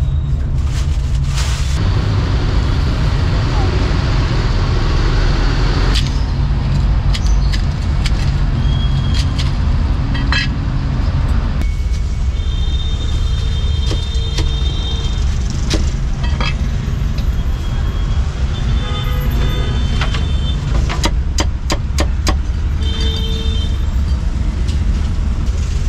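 Street traffic rumbles steadily outdoors.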